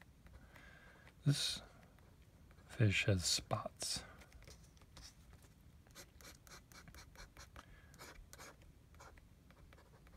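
A pen scratches in short strokes on paper.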